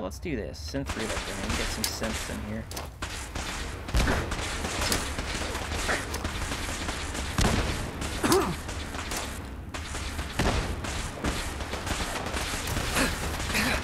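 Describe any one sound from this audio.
Explosions burst and rumble.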